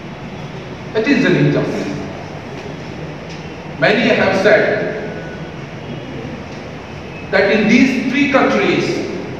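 A middle-aged man speaks forcefully through a microphone in an echoing hall.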